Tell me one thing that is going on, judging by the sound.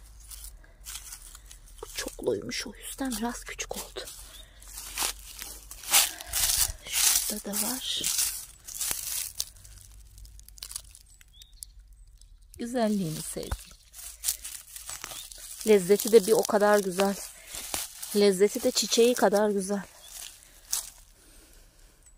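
Grass and dry leaves rustle close by as a hand pushes through them.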